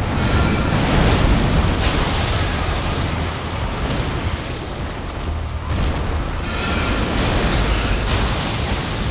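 A magic spell bursts with a whooshing shimmer.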